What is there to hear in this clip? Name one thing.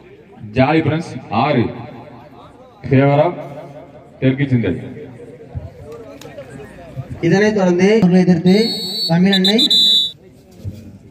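A young man chants loudly and rapidly outdoors.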